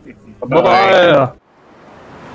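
A man speaks briefly and with animation into a microphone.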